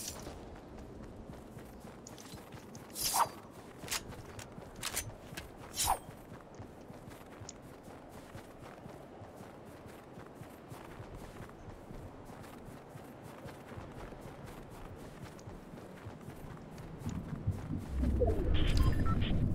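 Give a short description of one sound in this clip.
A game figure's footsteps crunch on snow.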